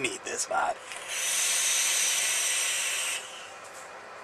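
An e-cigarette hisses steadily as a man draws on it.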